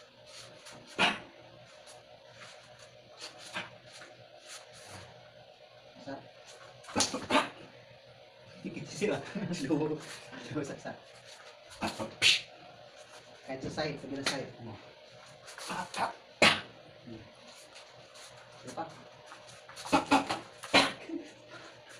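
Hands slap sharply against arms and bodies.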